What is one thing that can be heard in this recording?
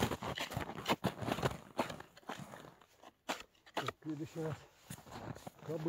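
Boots crunch and stamp on snow.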